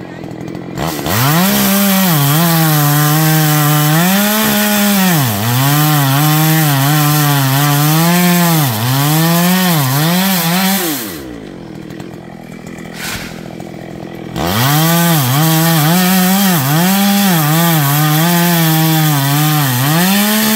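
A chainsaw engine roars and revs up and down while cutting wood.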